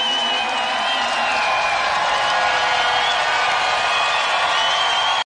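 A choir sings together.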